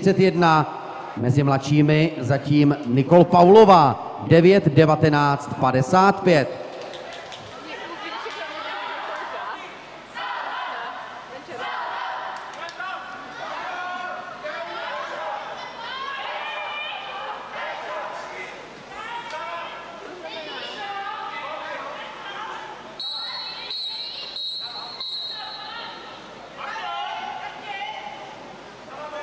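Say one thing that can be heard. Several people chatter in a large echoing hall.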